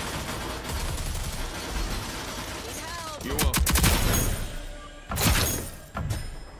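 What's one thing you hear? Gunfire rattles rapidly.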